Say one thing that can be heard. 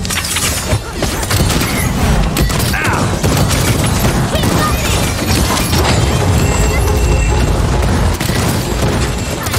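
Explosions boom in a video game.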